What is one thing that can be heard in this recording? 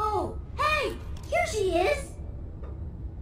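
A robot voice speaks in quick, excited chirps.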